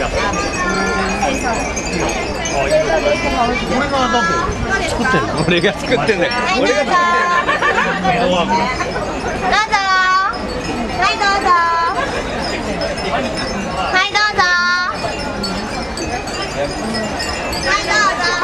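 A crowd chatters all around.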